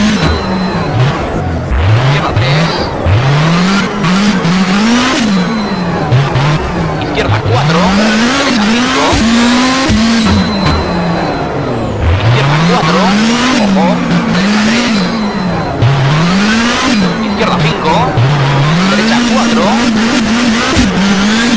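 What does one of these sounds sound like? A racing car engine revs hard, rising and falling with quick gear changes.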